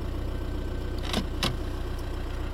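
A plastic dashboard lid snaps shut.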